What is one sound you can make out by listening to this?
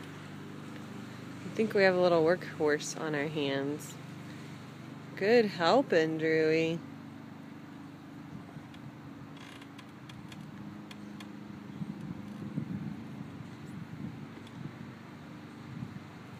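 A lawn mower's wheels roll softly over grass.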